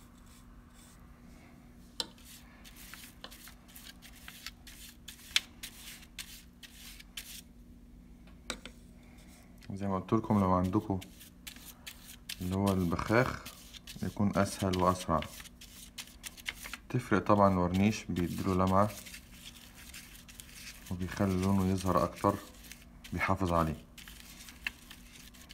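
A brush brushes and taps lightly on paper.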